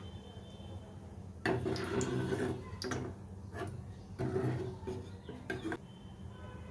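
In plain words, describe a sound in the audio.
A metal ladle scrapes and clinks against a pot.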